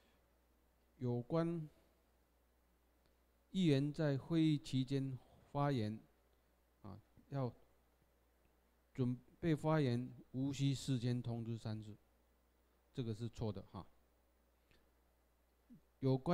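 A man speaks calmly through a microphone, pausing often.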